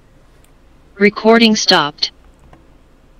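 A man speaks briefly and calmly into a close microphone over an online call.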